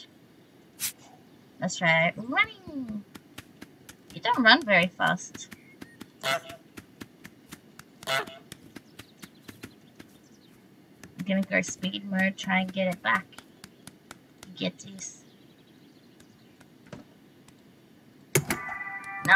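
A goose's feet patter quickly as it waddles.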